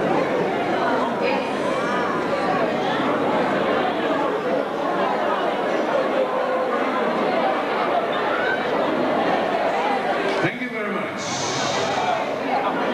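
A man sings loudly into a microphone over a loudspeaker, in an echoing hall.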